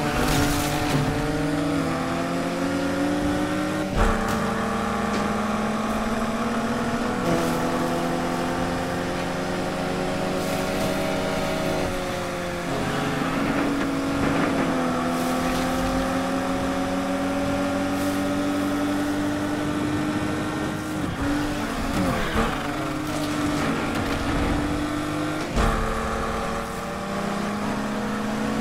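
A car engine roars steadily at high revs, shifting gears now and then.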